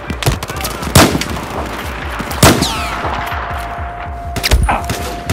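A sniper rifle fires single loud shots.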